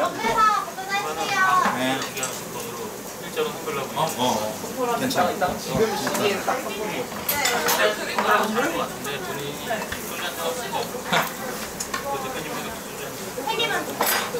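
Young men and women chat and laugh together in a lively crowd.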